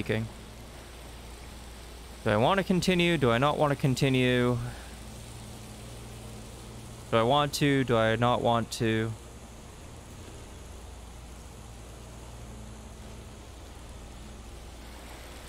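A torch flame crackles and hisses steadily.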